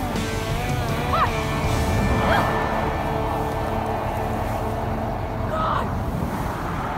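A young boy calls out nearby outdoors.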